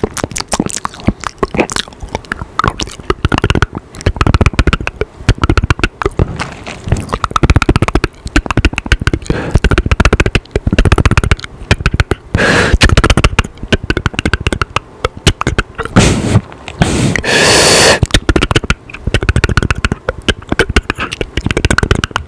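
A young man makes soft mouth clicks and smacking sounds close to a microphone.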